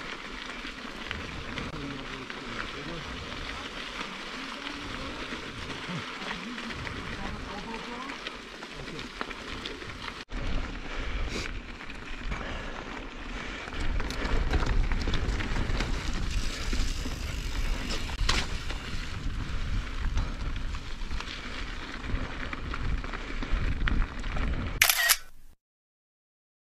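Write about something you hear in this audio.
Bicycle tyres roll and crunch over a loose gravel trail.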